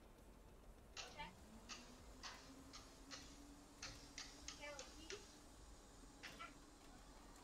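Switches click sharply several times.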